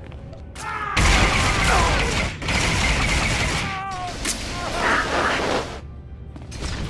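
Laser blasts fire in quick bursts.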